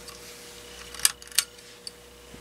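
A lamp switch clicks on.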